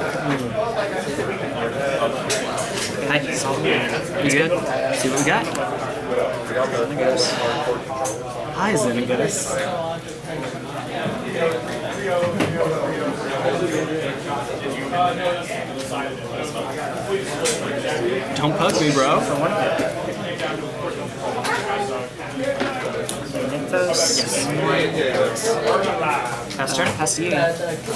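Cards tap and slide onto a table.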